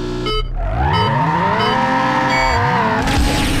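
Short electronic countdown beeps sound at an even pace.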